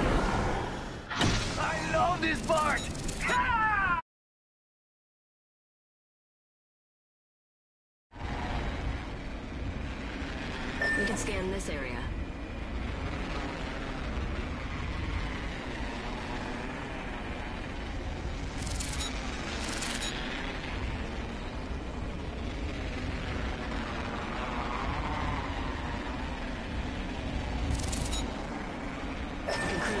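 Wind rushes steadily past during a fast skydive.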